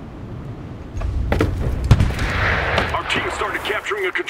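Distant explosions boom and rumble.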